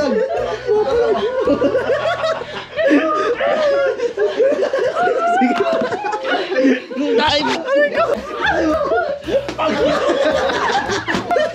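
Young people shout and scream excitedly close by.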